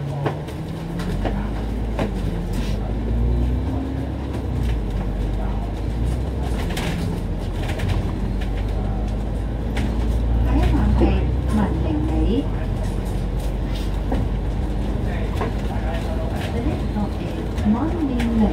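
A bus engine grows louder as the bus pulls away and drives on.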